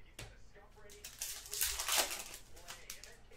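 A foil card pack crinkles and tears as hands rip it open.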